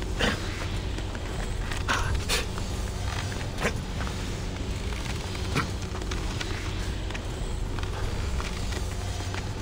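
Hands grip and scrape on rock as a climber scrambles up a cliff.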